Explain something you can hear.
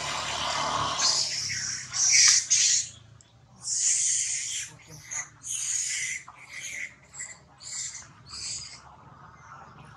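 A baby monkey squeals in short, high-pitched cries.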